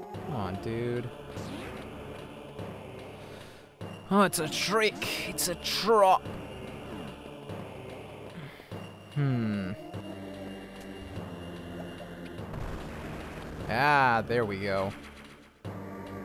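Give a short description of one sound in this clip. Electronic video game music plays steadily.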